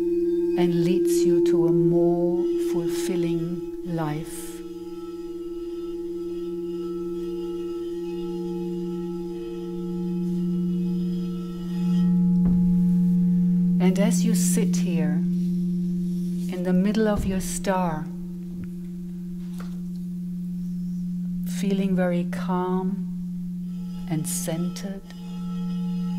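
A middle-aged woman sings softly into a microphone in short phrases.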